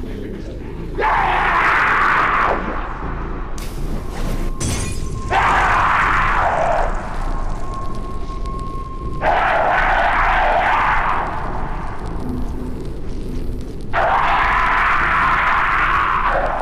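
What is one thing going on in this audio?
Flames roar and whoosh in loud bursts.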